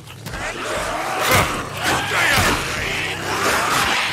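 Heavy blows strike with dull thuds.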